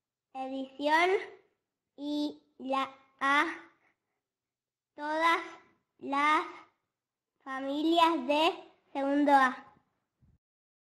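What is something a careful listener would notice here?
A young girl speaks slowly and clearly, close by.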